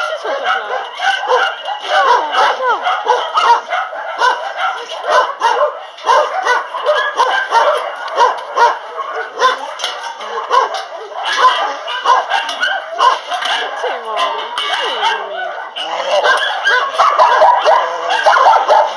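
Many dogs bark and whine excitedly nearby and all around.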